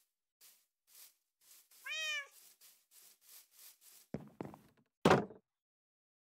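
Footsteps tap quickly on grass and a wooden floor.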